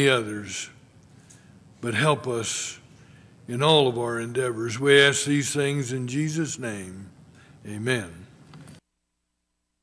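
A man speaks steadily through a loudspeaker in a large echoing hall.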